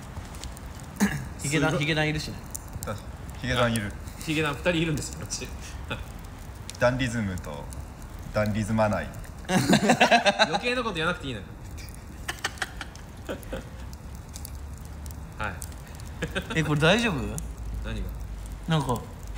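A young man talks and laughs calmly, close by.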